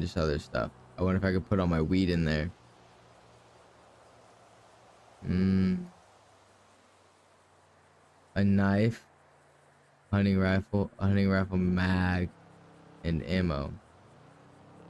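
A man talks into a microphone in short bursts.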